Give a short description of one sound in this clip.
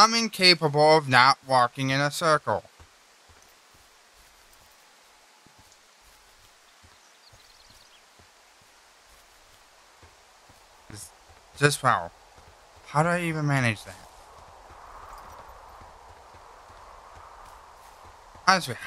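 Footsteps crunch steadily on a dirt trail.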